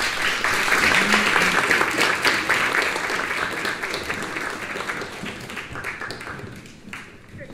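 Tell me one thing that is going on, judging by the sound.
A crowd applauds loudly in a large hall, then the applause fades away.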